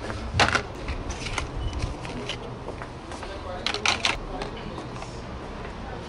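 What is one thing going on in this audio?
Plastic packages rustle and clack as they are handled.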